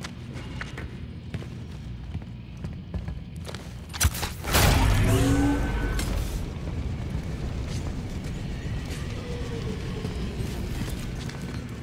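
Heavy boots step on a metal floor.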